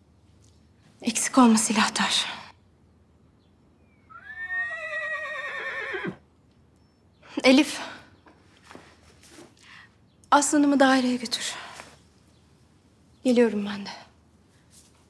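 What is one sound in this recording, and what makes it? A woman speaks calmly and quietly.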